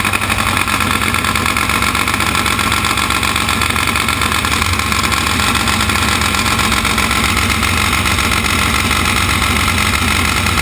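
A motorcycle engine idles loudly and steadily close by.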